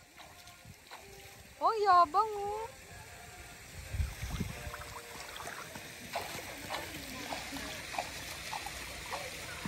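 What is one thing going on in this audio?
Water splashes gently.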